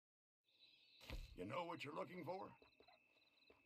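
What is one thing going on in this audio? An elderly man speaks in a low, gruff voice.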